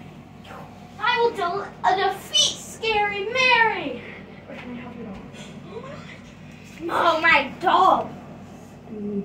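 A young child shouts and squeals excitedly close by.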